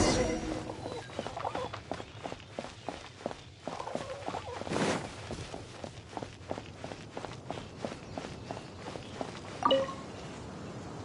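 Quick footsteps patter on stone and grass.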